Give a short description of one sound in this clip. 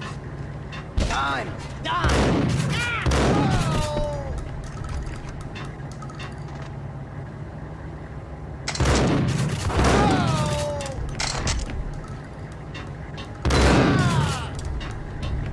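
A shotgun fires loud blasts that echo off the walls.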